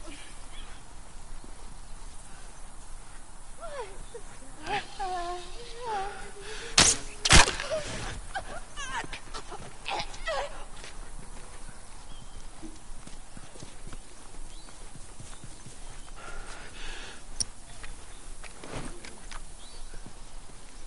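Footsteps rustle softly through tall grass.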